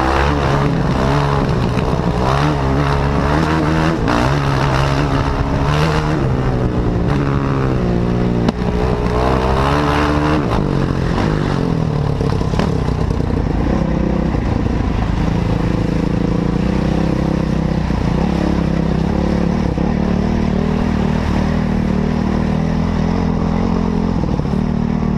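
A motorbike engine revs loudly up and down close by.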